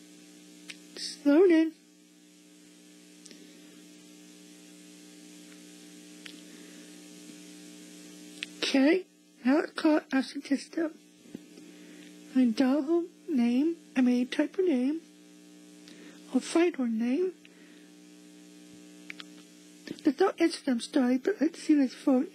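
A teenage girl speaks excitedly and close by.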